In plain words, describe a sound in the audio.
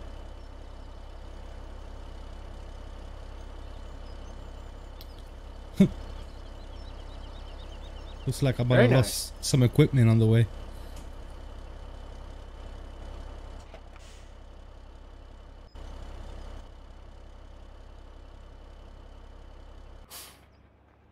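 A tractor engine drones steadily and then cuts off.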